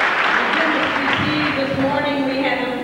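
A woman speaks through a microphone over loudspeakers.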